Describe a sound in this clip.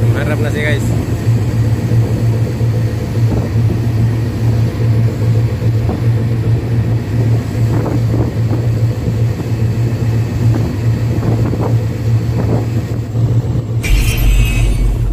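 A tugboat's diesel engine drones steadily under load.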